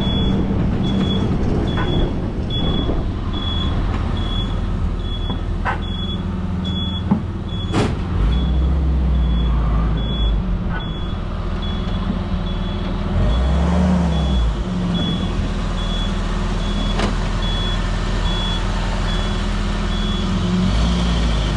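A turn signal beeps at a steady, even pace.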